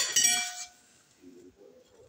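A pastry brush dabs softly on a moist cake.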